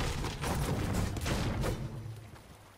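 A pickaxe strikes a wall with sharp knocks.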